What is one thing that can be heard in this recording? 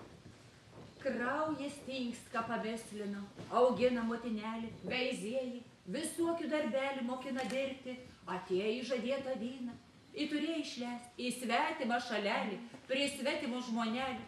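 A group of women sings together in a folk style.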